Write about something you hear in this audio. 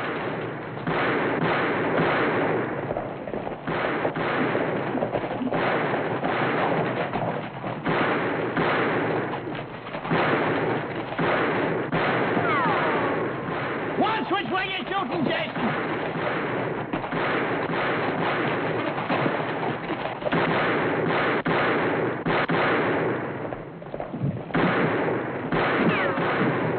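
Gunshots crack rapidly, one after another.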